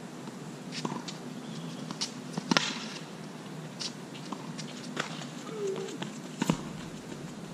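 Tennis balls are struck with rackets outdoors, with sharp pops back and forth.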